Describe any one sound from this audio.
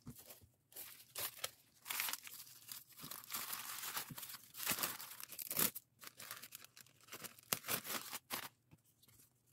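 A plastic mailer bag crinkles as it is handled and folded.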